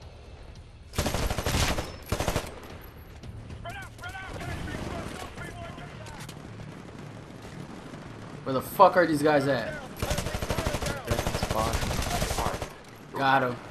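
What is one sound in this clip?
Rapid gunfire rattles in bursts, loud and close.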